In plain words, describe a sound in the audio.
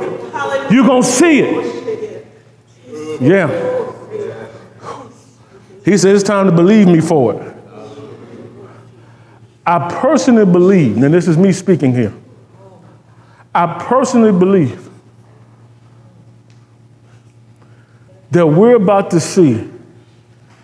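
A man speaks with animation in a room with a slight echo.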